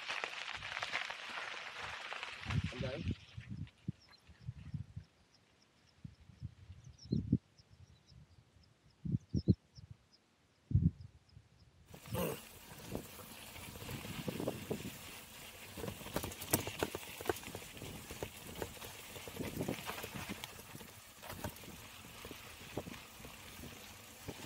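Mountain bike tyres roll downhill over a rocky dirt track.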